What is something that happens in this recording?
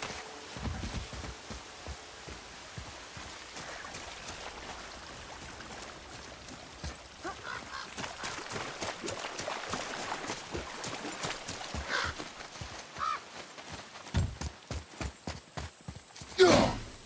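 Heavy footsteps thud on the ground, speeding up to a run.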